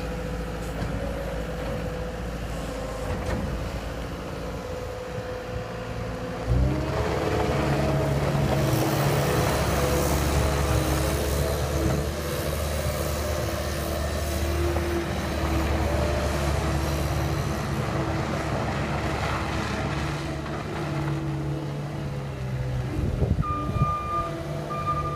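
A skid steer loader's diesel engine rumbles and revs as it drives about outdoors.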